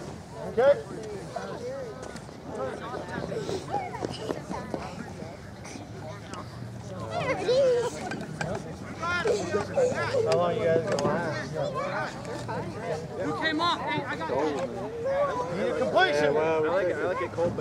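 Several men call out and shout across an open outdoor field.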